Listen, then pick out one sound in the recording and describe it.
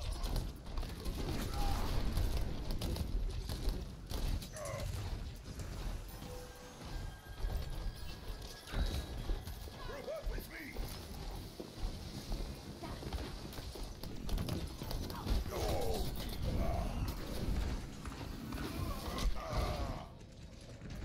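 Gunfire rattles rapidly in bursts.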